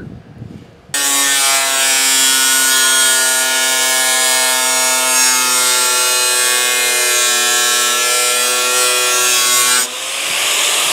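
An angle grinder whines steadily as it cuts steel.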